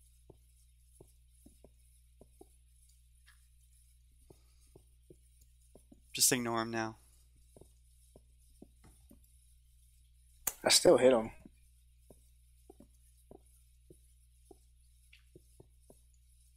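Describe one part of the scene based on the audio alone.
Footsteps tap steadily on stone and gravel.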